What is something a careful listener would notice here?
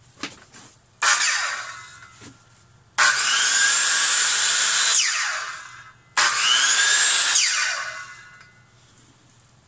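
A circular saw motor whirs up and winds down in short bursts.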